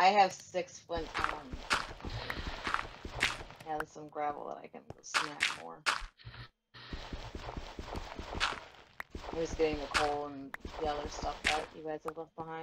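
Gravel crunches in short bursts as it is dug.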